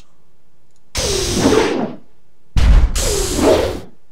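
A large monster roars loudly.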